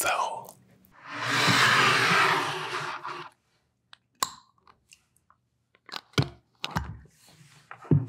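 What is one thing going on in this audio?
A jar lid twists and scrapes close to a microphone.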